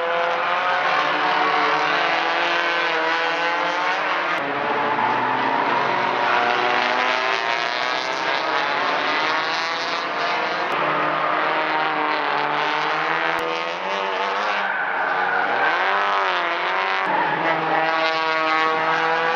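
Racing car engines roar and rev loudly as the cars pass close by.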